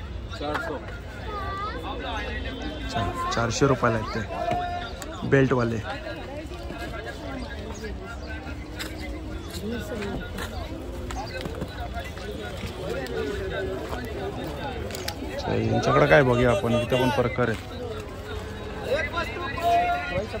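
A crowd of people chatters in the open air.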